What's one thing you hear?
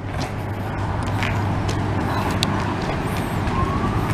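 Small feet patter on pavement as children run.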